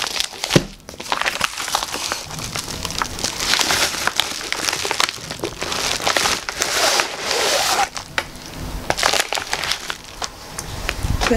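A padded plastic envelope crinkles and rustles up close.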